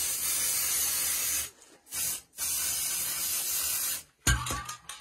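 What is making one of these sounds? A spray can hisses in long bursts.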